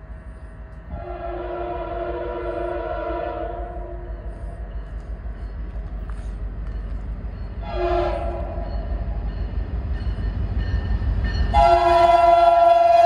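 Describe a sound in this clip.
A train horn blares in long blasts, drawing closer.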